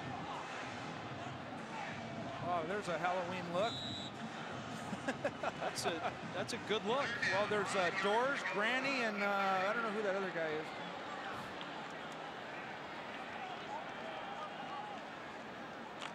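A large stadium crowd murmurs in the open air.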